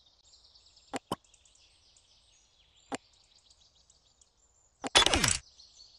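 Interface buttons click sharply a few times.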